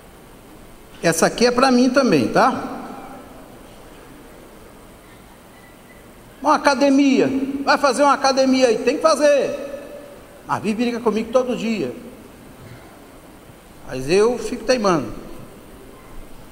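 A middle-aged man speaks with emphasis into a microphone, heard over loudspeakers in a reverberant hall, with pauses between phrases.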